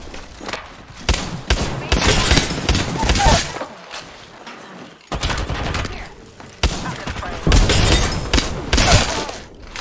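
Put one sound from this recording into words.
Rapid gunfire bursts out in short volleys.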